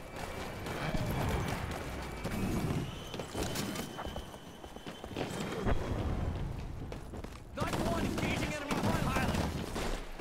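Footsteps thud on hard ground and metal floors.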